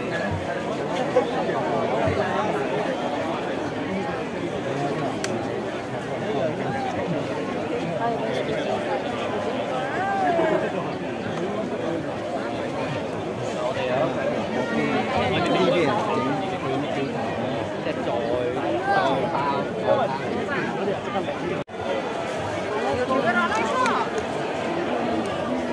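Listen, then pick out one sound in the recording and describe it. A crowd of people chatters all around, close by.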